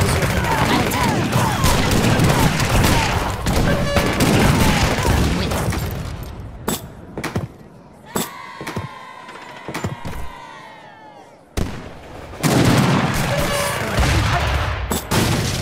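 Swords clash and soldiers clamour in a battle.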